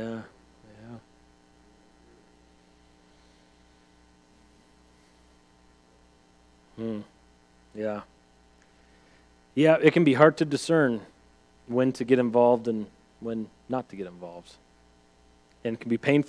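A man speaks calmly, pausing often.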